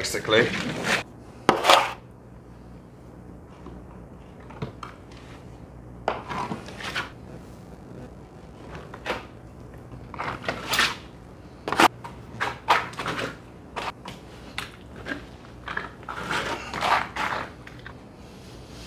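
A scraper scrapes plaster off a wall in short rasping strokes.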